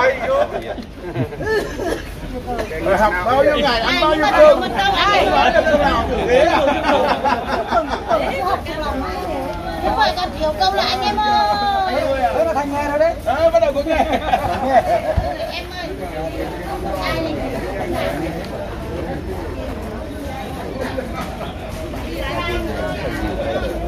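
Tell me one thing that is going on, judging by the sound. Several men and women chatter nearby.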